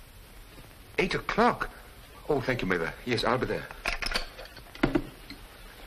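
A middle-aged man speaks urgently on the telephone.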